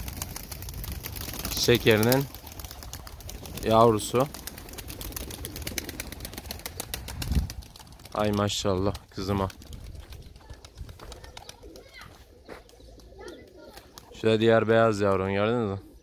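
Pigeons flap their wings in flight overhead.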